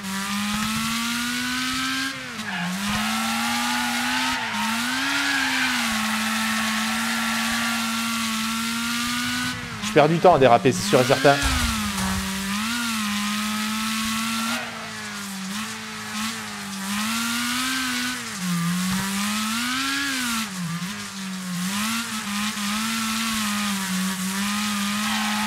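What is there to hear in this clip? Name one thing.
A racing car engine roars, revving up and down as it shifts gears.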